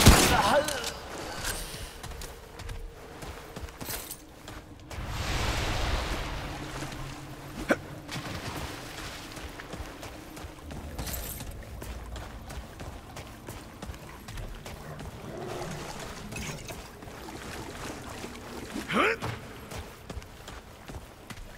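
Footsteps tread slowly across a wet stone floor in an echoing tunnel.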